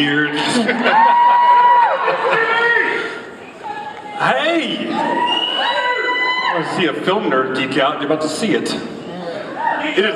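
A second man answers through a microphone.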